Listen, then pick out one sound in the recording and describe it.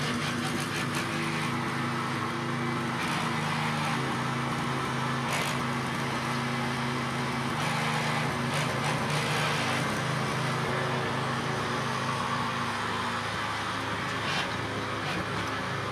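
Tiller blades churn and scrape through soil.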